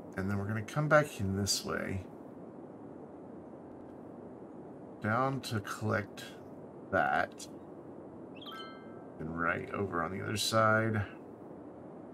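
A middle-aged man talks calmly into a close microphone, in short bursts.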